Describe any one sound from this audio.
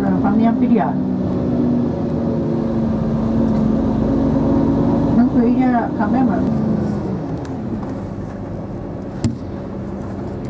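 A vehicle rumbles steadily as it drives along a road.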